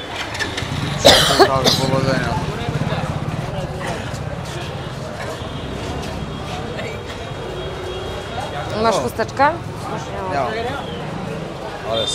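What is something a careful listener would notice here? Men talk loudly close by.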